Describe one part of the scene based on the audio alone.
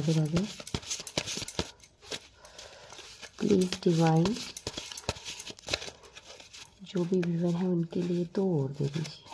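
Paper cards rustle and tap as they are handled.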